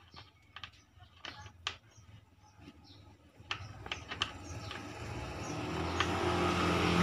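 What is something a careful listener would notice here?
A staple gun clicks sharply, again and again.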